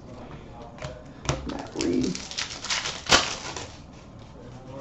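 Stiff trading cards rustle and flick as they are shuffled by hand.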